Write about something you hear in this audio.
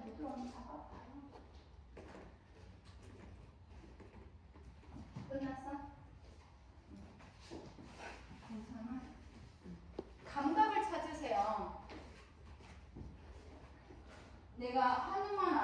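A young woman talks casually and laughs nearby.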